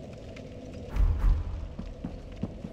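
Armoured footsteps thud on stone.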